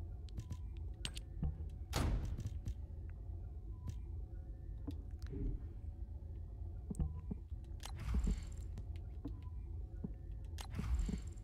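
Soft menu clicks and beeps sound as selections change.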